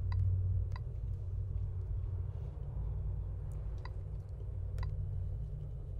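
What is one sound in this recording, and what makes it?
A tablet gives short, high beeps.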